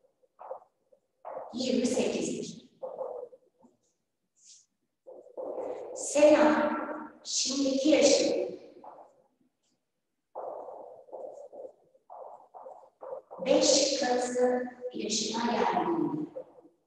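A young woman speaks calmly, close by, in short phrases with pauses.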